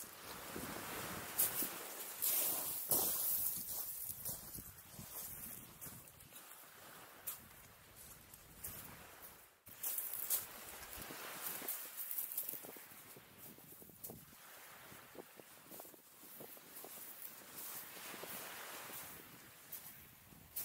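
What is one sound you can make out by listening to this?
Small waves wash onto a pebble beach.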